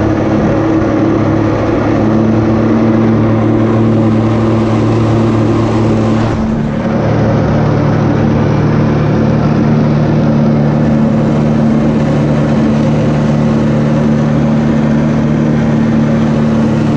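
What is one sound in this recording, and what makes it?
A jet ski engine drones steadily nearby.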